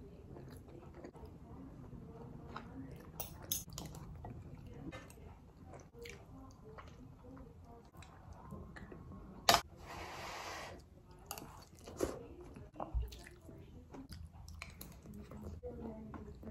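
A metal spoon and fork clink and scrape against a plate.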